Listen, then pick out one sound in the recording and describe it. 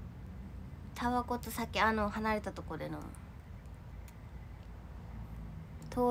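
A young woman speaks softly and close to the microphone, with pauses.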